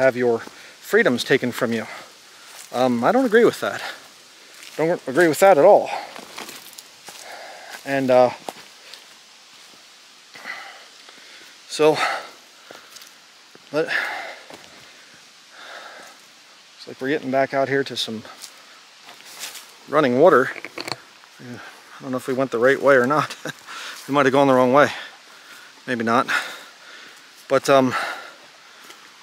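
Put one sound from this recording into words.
A middle-aged man talks calmly close to the microphone, outdoors.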